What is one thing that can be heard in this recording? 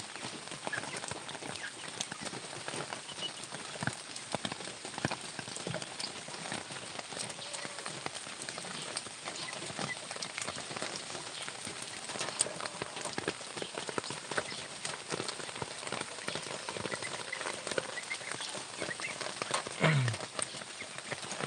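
Rabbits rustle and shuffle in dry grass and leaves close by.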